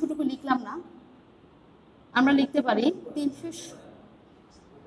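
A woman speaks clearly like a teacher, close by.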